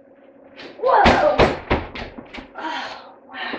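Footsteps thump on a wooden floor.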